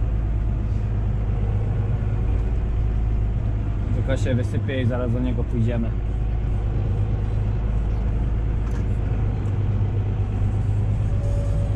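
A tractor engine rumbles steadily from inside the cab.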